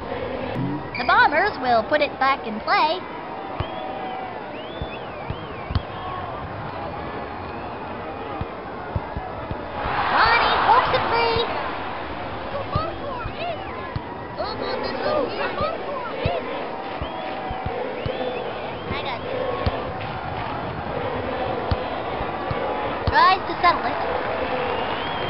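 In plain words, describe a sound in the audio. A crowd cheers and murmurs steadily in a stadium.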